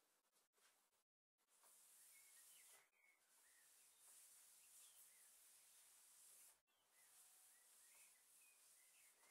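A cloth rubs softly across a wooden surface.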